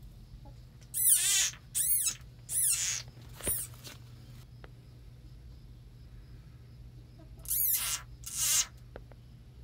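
A frog caught by a snake gives loud, shrill squeals in short bursts.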